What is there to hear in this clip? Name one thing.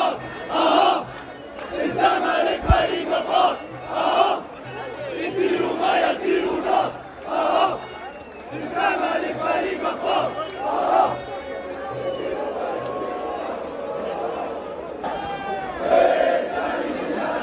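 Men shout excitedly close by.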